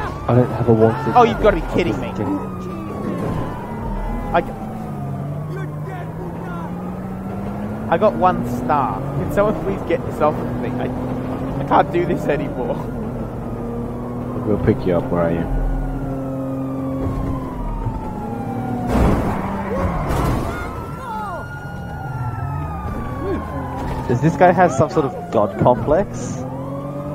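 A car engine revs and hums as the car speeds along.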